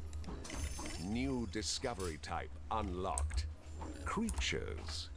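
Bright electronic chimes sound.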